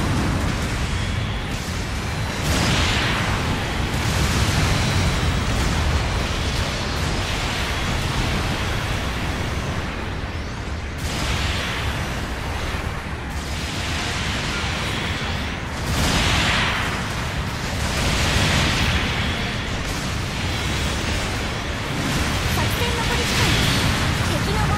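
Beam rifles fire in sharp bursts.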